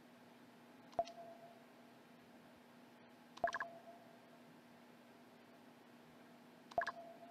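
A short electronic chime sounds as game dialogue advances.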